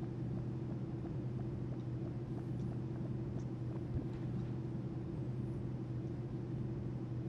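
An airship's engines hum steadily.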